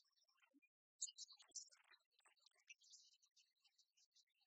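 Dice rattle and roll across a table.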